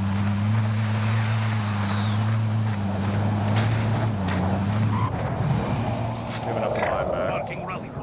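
A vehicle engine hums loudly as it drives.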